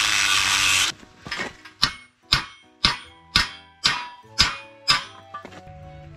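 Sharp metallic blows ring out as a metal pipe is knocked over.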